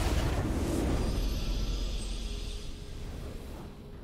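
A triumphant fanfare swells.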